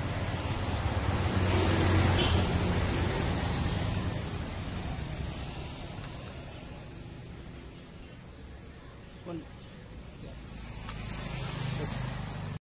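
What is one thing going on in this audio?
A metal wrench clicks and scrapes against an engine part.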